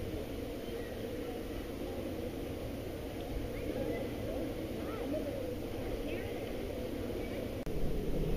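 Two young girls talk quietly close by in the water.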